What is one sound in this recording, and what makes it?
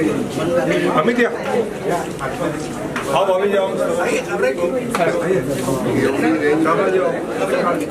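A middle-aged man speaks calmly to a microphone close by.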